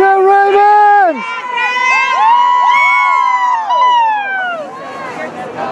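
A crowd of spectators cheers and whoops loudly outdoors.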